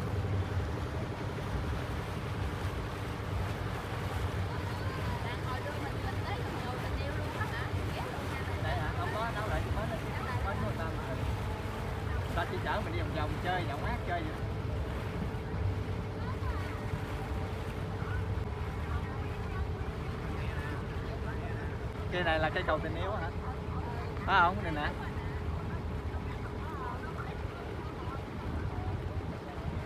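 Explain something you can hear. Water laps and splashes nearby.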